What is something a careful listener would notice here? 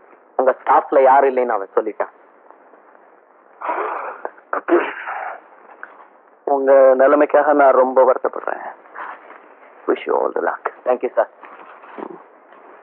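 Two men talk with each other in a calm, close conversation.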